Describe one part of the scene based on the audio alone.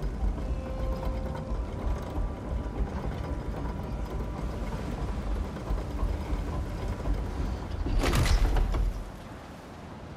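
A heavy lift rumbles and grinds as it rises.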